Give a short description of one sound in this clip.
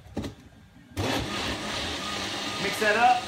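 A blender whirs loudly.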